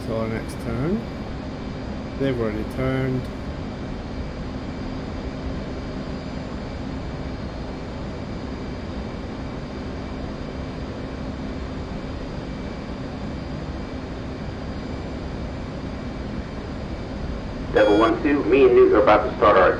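A jet engine hums steadily in a cockpit.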